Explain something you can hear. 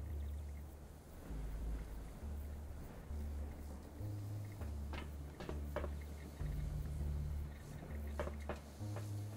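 Footsteps tread across a hard floor.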